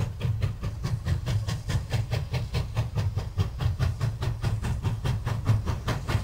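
A steam locomotive rumbles deeply along the rails.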